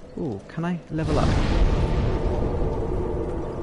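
A fire flares up with a loud whoosh and keeps roaring.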